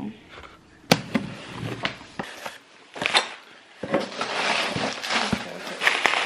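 A cardboard box rustles and thumps as it is handled.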